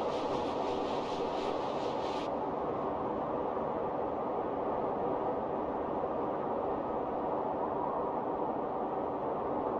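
Wind blows steadily.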